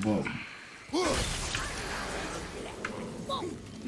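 A cloud of gas bursts with a loud rushing hiss.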